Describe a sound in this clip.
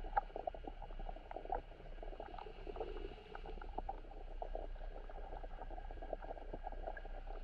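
Muffled water crackles and clicks steadily underwater.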